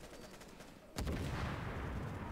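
An explosion booms loudly with a rumbling roar.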